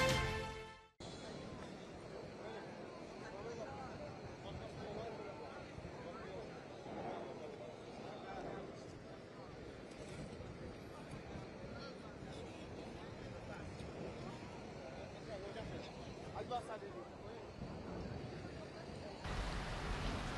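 A crowd of men and women murmurs and chatters nearby.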